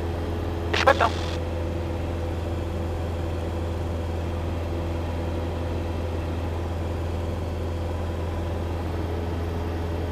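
A small propeller plane's engine drones steadily throughout.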